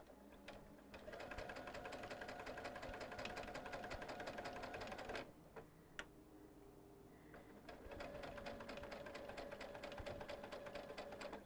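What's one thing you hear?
A sewing machine runs fast with a rapid stitching whir.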